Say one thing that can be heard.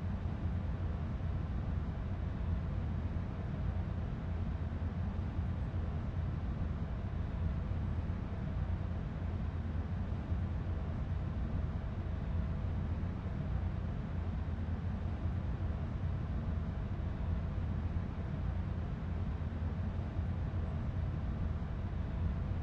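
A diesel locomotive engine idles with a steady, low rumble.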